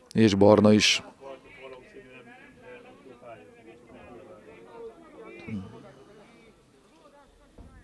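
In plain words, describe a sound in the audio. Men talk among themselves at a distance.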